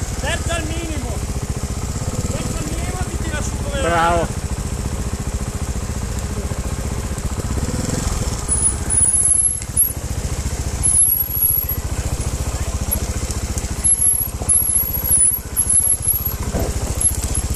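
A dirt bike engine runs close by, rising and falling as it rides over rough ground.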